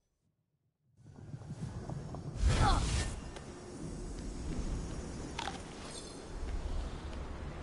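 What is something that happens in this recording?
A glowing floor sigil crackles and bursts with sparks.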